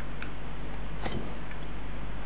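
A glass bottle clinks as it is picked up.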